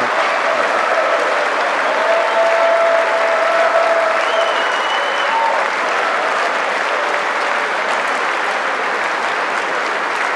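A large crowd applauds in an echoing hall.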